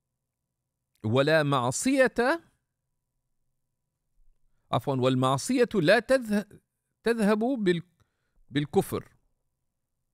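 A man speaks calmly and slowly into a close microphone, with pauses.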